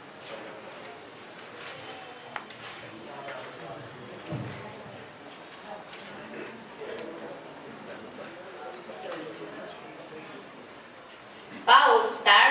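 Children talk quietly at a distance.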